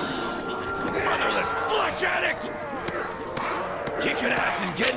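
Zombies growl and snarl close by.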